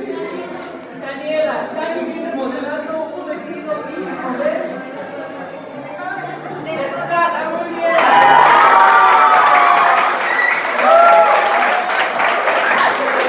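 A crowd of men and women chatters in the background.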